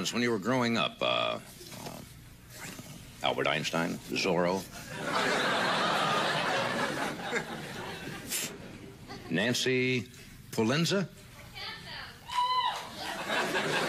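An elderly man speaks into a microphone, pausing between lines.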